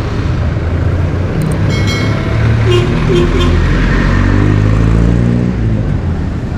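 A jeepney engine rumbles as it drives by.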